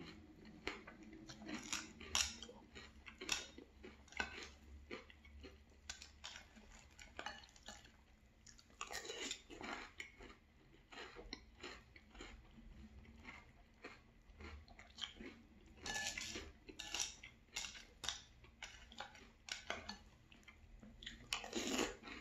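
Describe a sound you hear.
A man crunches cereal loudly with his mouth close to a microphone.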